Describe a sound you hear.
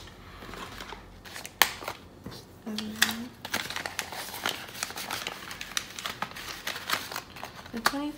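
A cloth pouch rustles as hands open and fill it.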